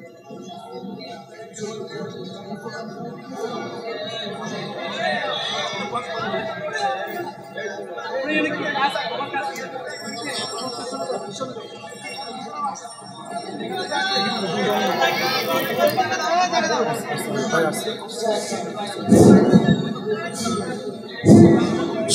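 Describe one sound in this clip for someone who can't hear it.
A man preaches with fervour through a loudspeaker, outdoors.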